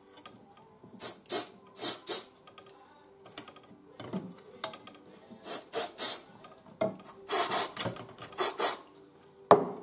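Small plastic clicks and knocks come from equipment being handled up close.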